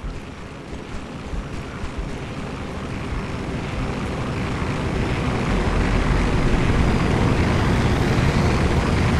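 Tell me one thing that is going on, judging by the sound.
A helicopter roars overhead, growing louder as it approaches.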